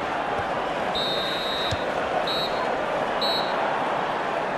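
A referee's whistle blows in short sharp blasts.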